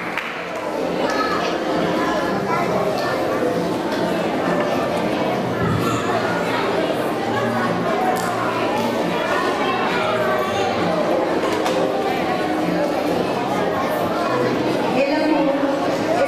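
A woman speaks calmly through a microphone and loudspeakers.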